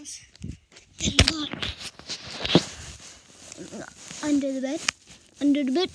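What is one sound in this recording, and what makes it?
Fabric rustles and brushes close against the microphone.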